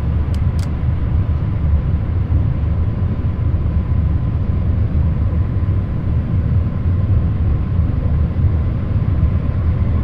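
A windscreen wiper sweeps back and forth.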